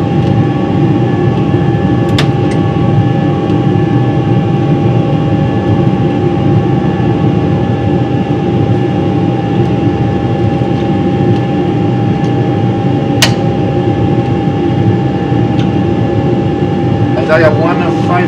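A steady engine and air roar fills an aircraft cockpit.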